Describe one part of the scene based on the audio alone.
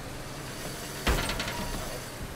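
A car crashes into a fence with a loud bang.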